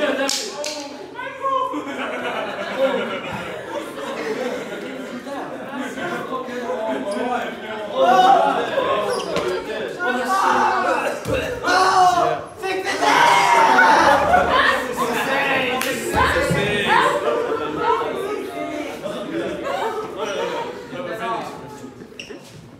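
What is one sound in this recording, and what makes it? Several teenage boys talk and shout excitedly close by.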